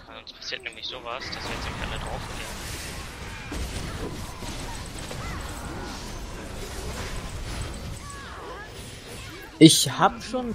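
Magic spells crackle and burst in a fast fight.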